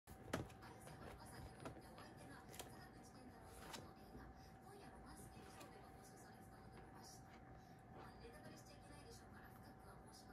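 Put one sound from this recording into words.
A puppy's paws and claws scuffle on a leather couch.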